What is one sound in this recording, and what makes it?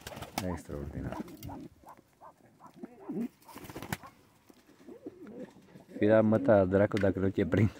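A pheasant pecks at grain in a metal feeder.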